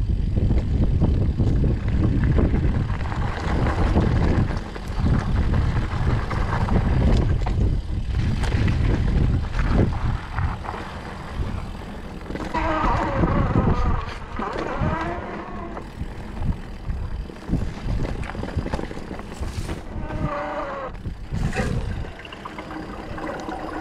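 Wind rumbles and buffets loudly against a microphone.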